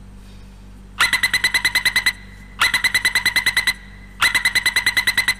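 A departure alarm beeps rapidly in short bursts.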